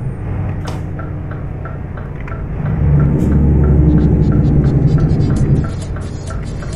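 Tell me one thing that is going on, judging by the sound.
A turn signal ticks at an even, quick pace.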